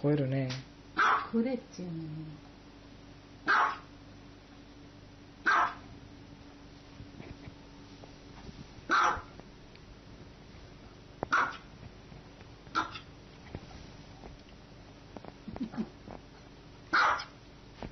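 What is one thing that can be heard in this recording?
A small dog barks in sharp, high yaps.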